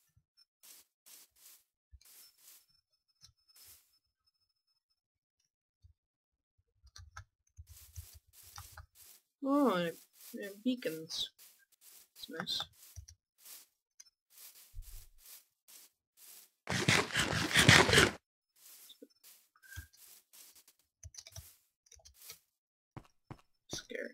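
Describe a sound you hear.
Footsteps thud softly on grass at a steady walking pace.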